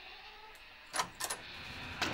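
A door handle clicks and a door swings open.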